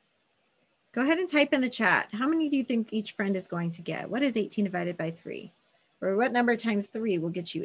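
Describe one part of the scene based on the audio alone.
A woman speaks calmly and clearly over an online call.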